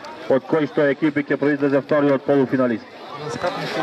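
A large crowd chants loudly in rhythm outdoors.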